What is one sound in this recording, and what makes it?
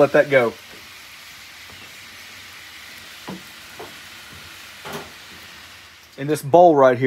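Hot oil sizzles steadily in a pan.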